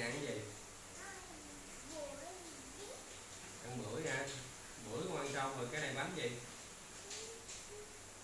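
A toddler babbles in a high voice.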